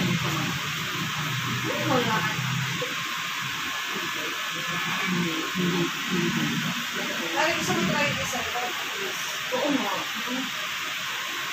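A woman talks with animation close by.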